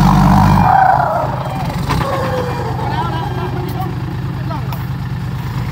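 Truck tyres crunch over dirt and grass.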